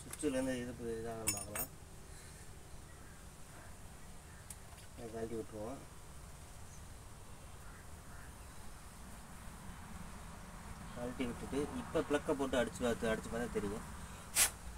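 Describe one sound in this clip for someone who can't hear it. A man speaks close by in short bursts.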